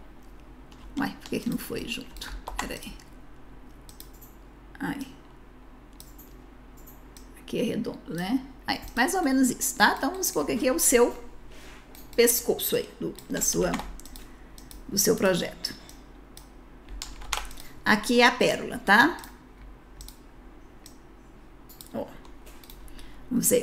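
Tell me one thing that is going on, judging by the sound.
A woman talks calmly into a close microphone.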